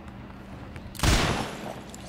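A harpoon gun fires with a sudden loud blast.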